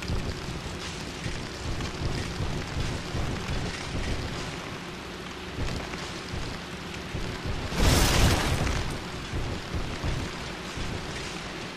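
Armoured footsteps clank and thud on wooden planks.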